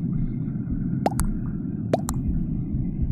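A short chat alert chirps as new messages arrive.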